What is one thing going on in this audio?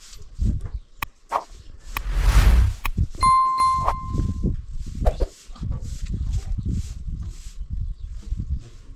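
A wheelbarrow rattles and clanks as it is moved over rough ground.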